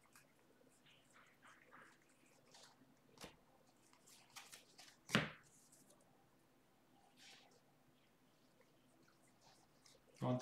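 Trading cards riffle and slide against each other as they are shuffled by hand.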